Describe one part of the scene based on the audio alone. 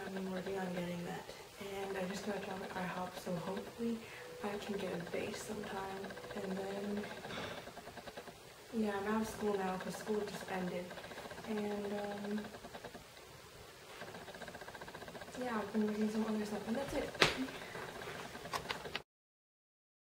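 A young woman talks casually and animatedly close by.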